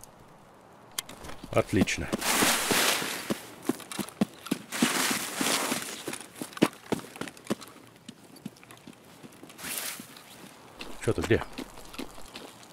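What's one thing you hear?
Footsteps tread steadily over grass and gravel.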